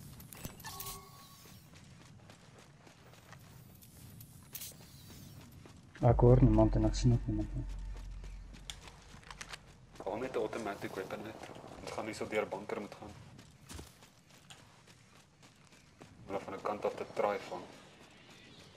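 Footsteps crunch quickly over sand and dry grass.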